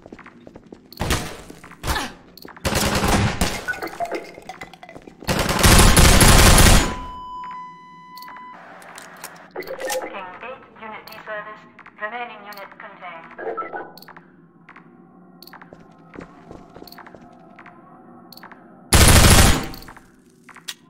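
Gunfire bursts out loudly in rapid shots.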